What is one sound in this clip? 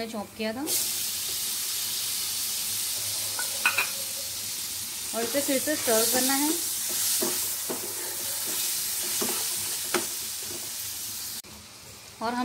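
Food sizzles loudly in a hot frying pan.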